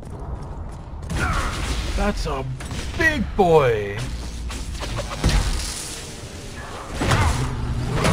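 Magic blasts crackle and boom in a fight.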